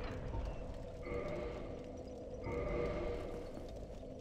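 A soft menu chime sounds twice.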